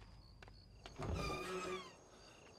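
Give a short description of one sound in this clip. A young man speaks, close by.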